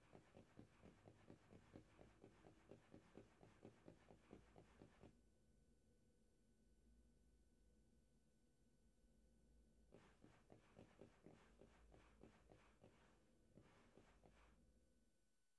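Quick footsteps run over rocky ground.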